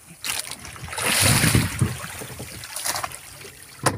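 A large fish thrashes and splashes at the water's surface.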